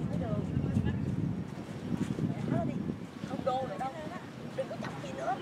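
Young girls chatter and call out nearby.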